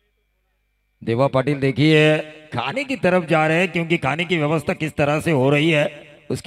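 A man commentates with animation through a microphone.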